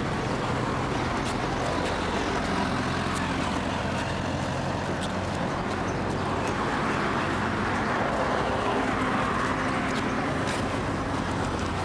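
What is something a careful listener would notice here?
Traffic rumbles steadily along a road outdoors.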